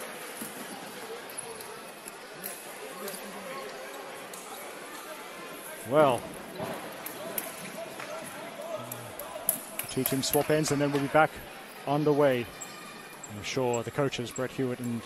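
A crowd murmurs in a large echoing indoor hall.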